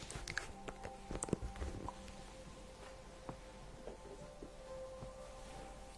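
Clothes rustle against a microphone as a young woman moves.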